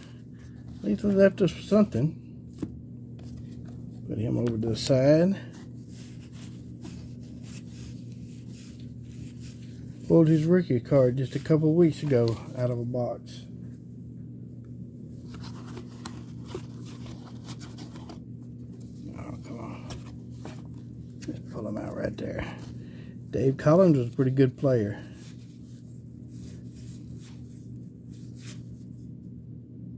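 Stiff paper cards flick and rustle as they are shuffled by hand.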